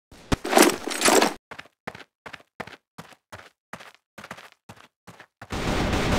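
Footsteps tap steadily on hard ground.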